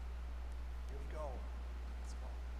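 An elderly man speaks quietly at a distance in an echoing hall.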